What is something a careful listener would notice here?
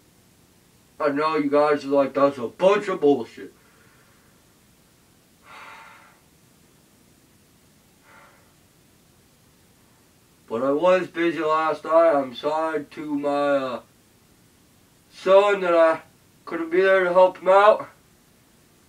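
A young man speaks through a mask, close by, in short bursts.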